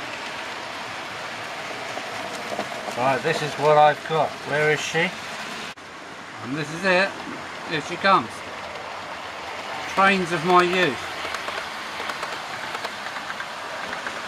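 A model electric train rumbles along model track.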